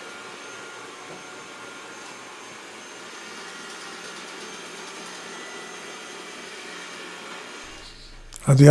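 A robot vacuum cleaner hums and whirs steadily as it moves across the floor.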